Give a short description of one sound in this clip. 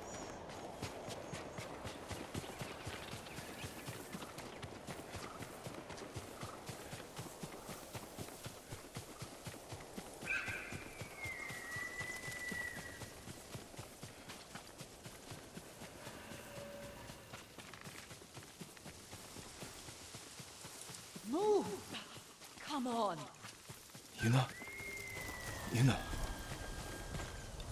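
Quick footsteps run steadily through tall grass.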